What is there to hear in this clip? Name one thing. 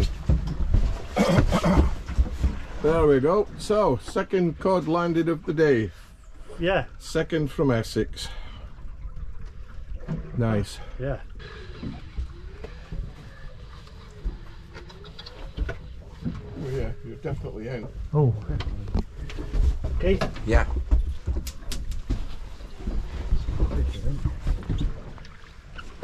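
Wind blusters outdoors over open water.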